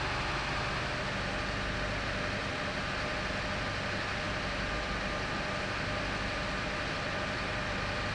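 A fire engine idles with a steady low rumble.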